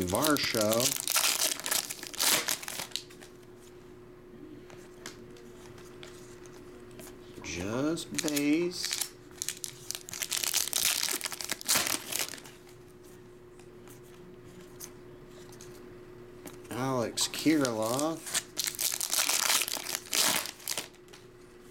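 A foil card pack crinkles and tears as it is opened.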